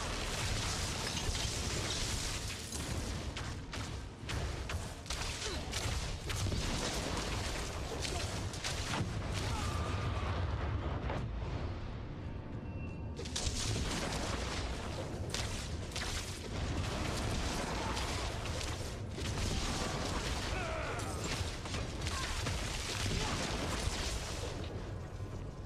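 Game spells and blows crackle and thud in quick bursts.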